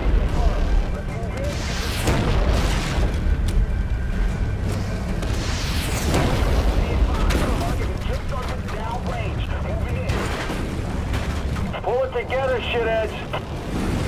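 Fire crackles and roars.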